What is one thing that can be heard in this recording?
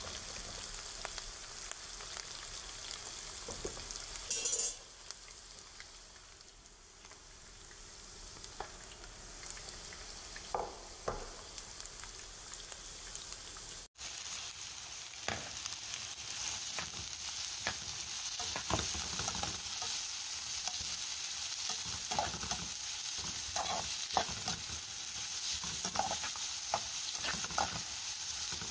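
Onions sizzle in a hot pan.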